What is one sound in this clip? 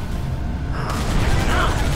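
A cannon fires with a loud blast.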